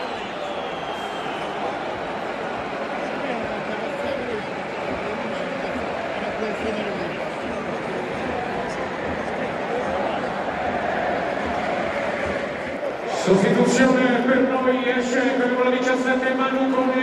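A large stadium crowd murmurs and chatters in a wide, open space.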